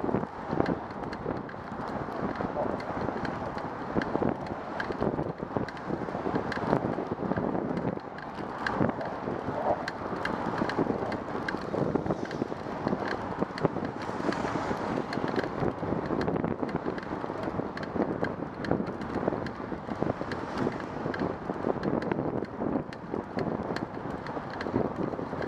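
Wind rushes and buffets steadily outdoors.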